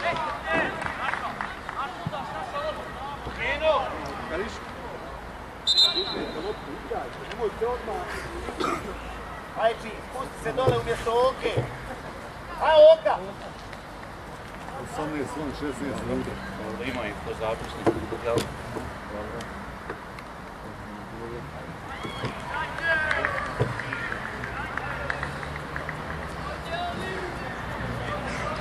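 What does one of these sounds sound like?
Young players shout and call out across an outdoor field.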